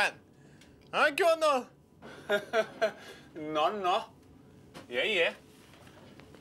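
A man talks smugly nearby.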